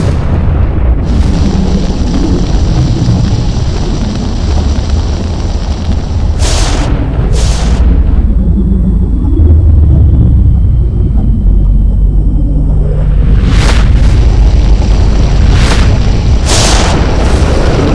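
An explosion booms close by with a roar of fire.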